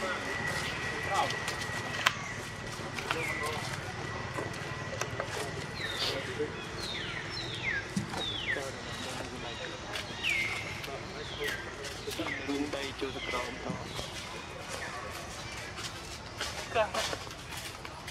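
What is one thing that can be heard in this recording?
A monkey shifts about on dry leaves, rustling them.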